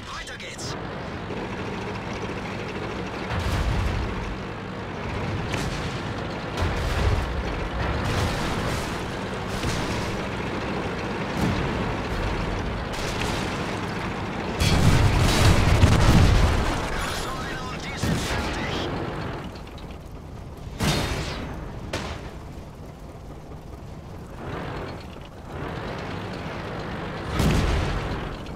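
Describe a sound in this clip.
A tank engine rumbles steadily.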